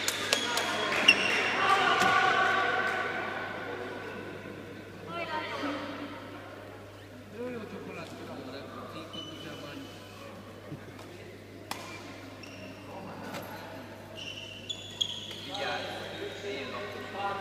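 Shoes squeak on a hard court in a large echoing hall.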